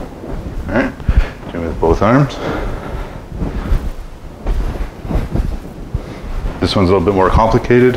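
A young man talks with animation in a small echoing room.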